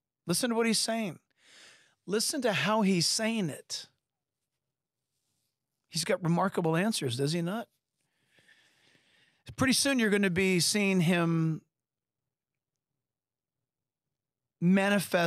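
A middle-aged man speaks calmly and earnestly into a close microphone, with pauses.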